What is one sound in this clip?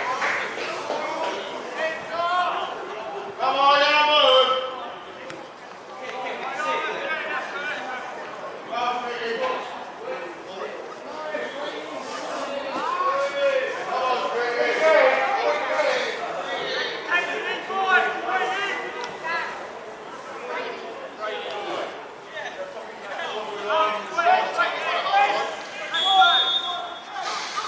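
Players and spectators shout and call out across an open field outdoors.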